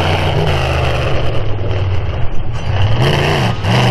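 Big tyres thump and bounce over dirt mounds.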